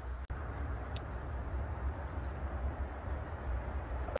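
A man slurps soup from a bowl.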